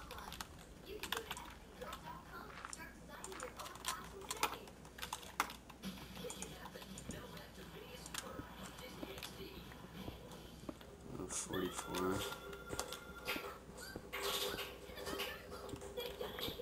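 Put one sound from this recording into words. Digging tool chips and cracks at blocks in quick repeated knocks.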